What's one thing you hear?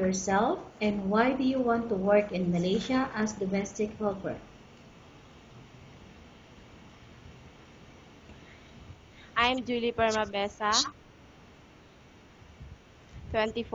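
A woman speaks calmly and close into a microphone, pausing between phrases.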